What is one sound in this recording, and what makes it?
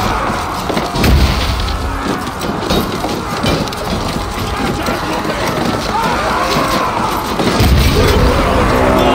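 A heavy wooden ram thuds against a gate.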